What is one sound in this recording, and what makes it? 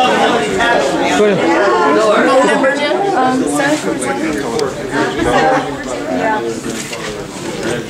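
A crowd murmurs in the background of a busy room.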